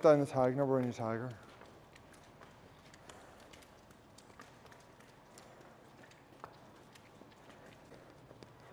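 Cow hooves clatter on a hard floor.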